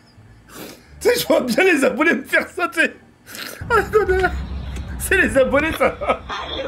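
A young man laughs loudly close to a microphone.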